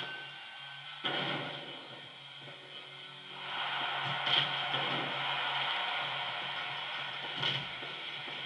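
Heavy thuds of bodies hitting a wrestling mat ring out.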